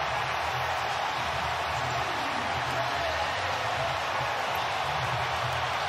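A huge stadium crowd roars and cheers loudly.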